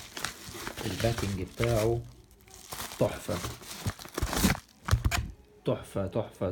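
A padded plastic mailer rustles and crinkles.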